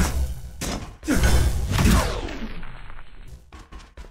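A blade slashes through the air with a sharp metallic swish.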